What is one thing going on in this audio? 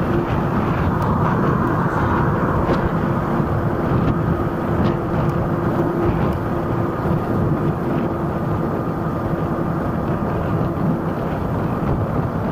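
An electric scooter motor whines steadily.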